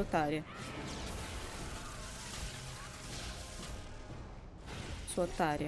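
A magical energy blast roars.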